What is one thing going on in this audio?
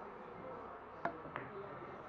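A cue tip strikes a billiard ball with a sharp click.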